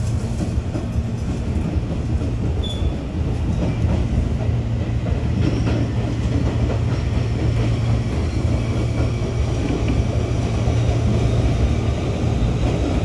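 Train wheels clack over rail joints and switches.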